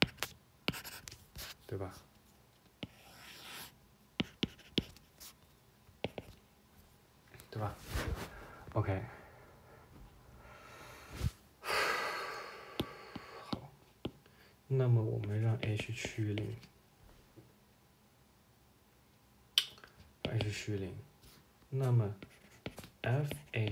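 A stylus taps and scratches on a tablet's glass.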